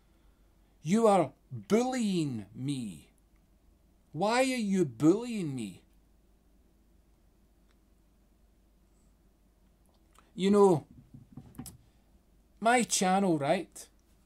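A man speaks close by with animation, in short bursts.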